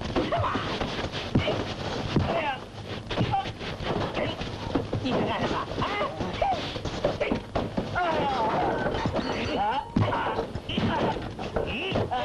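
Bodies knock and thump against a wooden railing.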